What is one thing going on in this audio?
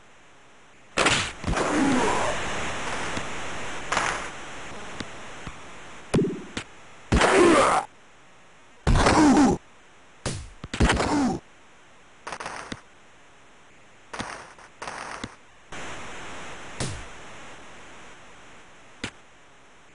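A video game crowd roars and cheers.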